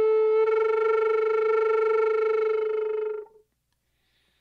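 A wooden flute plays a long, steady held note close by, then stops.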